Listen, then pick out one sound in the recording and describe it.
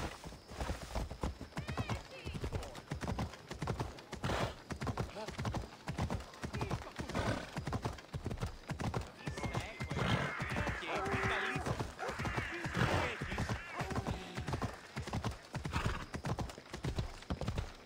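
Horse hooves clop steadily on stone paving.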